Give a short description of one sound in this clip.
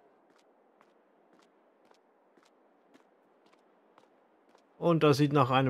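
Footsteps tap on a hard surface at a steady walking pace.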